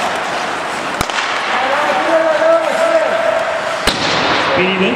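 A hockey stick sharply smacks a puck.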